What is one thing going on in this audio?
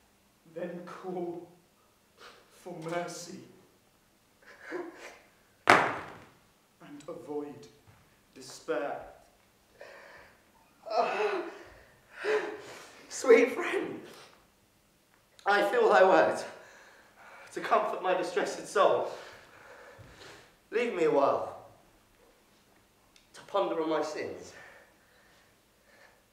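A man speaks dramatically in phrases with pauses.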